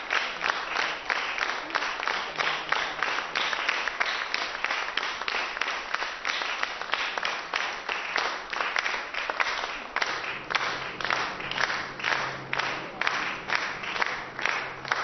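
An audience claps in an even rhythmic pulse.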